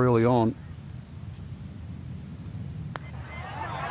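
A putter taps a golf ball softly.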